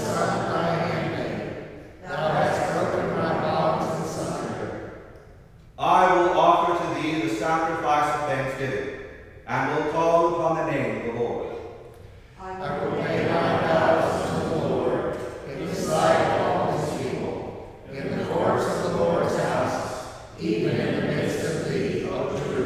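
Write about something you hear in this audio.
A man sings in long phrases in a large echoing hall.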